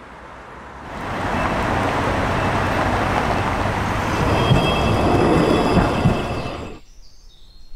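Cars drive past through a busy junction.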